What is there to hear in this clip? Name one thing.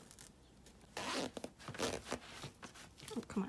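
A zipper is pulled open.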